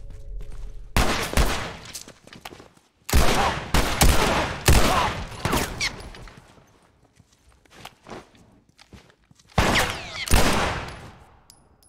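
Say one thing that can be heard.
Pistol shots ring out loudly, one after another.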